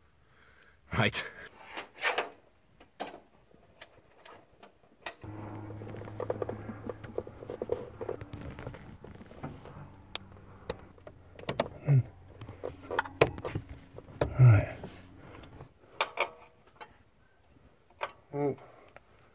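Metal parts click and clink under hands at work.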